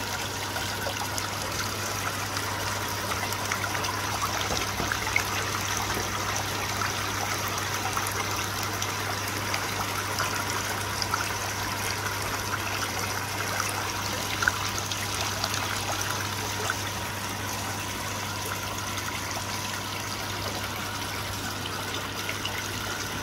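Water gently bubbles and trickles in a pond.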